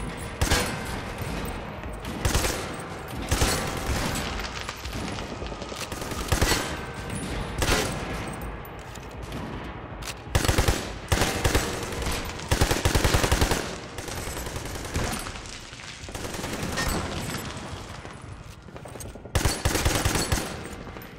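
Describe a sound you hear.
Guns fire in short, loud bursts.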